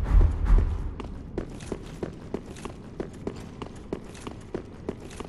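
Armoured footsteps run quickly on stone.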